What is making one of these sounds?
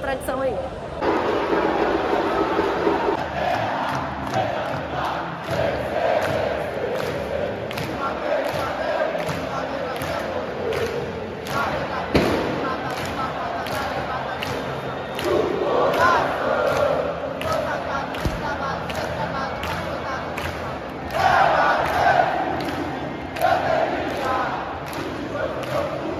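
Fans clap their hands in rhythm.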